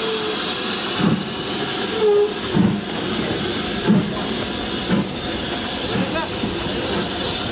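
A steam locomotive chuffs slowly as it pulls away.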